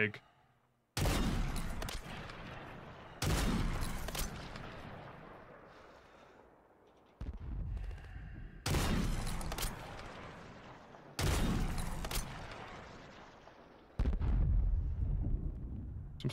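A rifle fires loud booming shots, one at a time, each echoing away.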